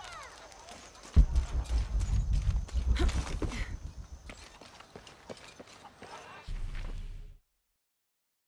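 Footsteps crunch on stone and dirt.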